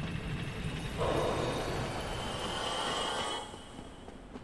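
A magic spell crackles and whooshes.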